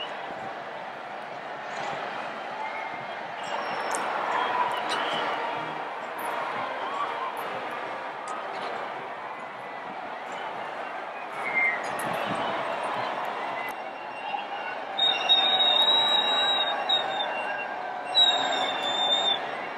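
A large crowd of people chatters and shouts outdoors.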